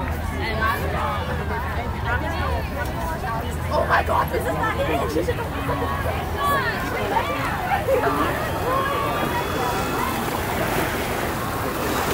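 A crowd of men and women shouts and cheers outdoors.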